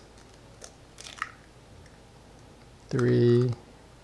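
An eggshell cracks against a bowl's rim.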